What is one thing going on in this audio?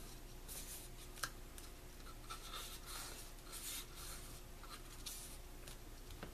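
Hands smooth and press paper with a soft rustle.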